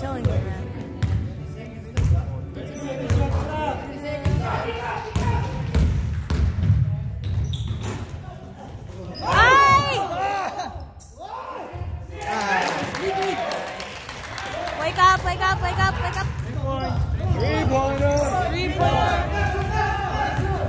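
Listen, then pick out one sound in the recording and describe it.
Men shout and call out to each other across the echoing gym.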